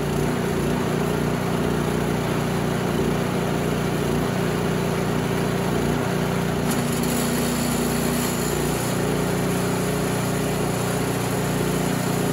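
A small engine idles steadily and loudly nearby.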